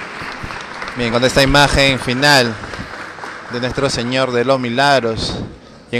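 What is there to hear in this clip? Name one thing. A crowd sings a hymn loudly nearby.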